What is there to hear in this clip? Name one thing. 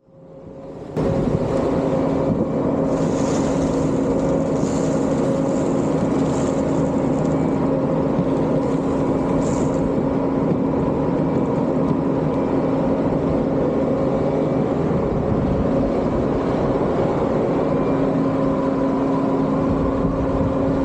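A loader's diesel engine runs loudly and steadily.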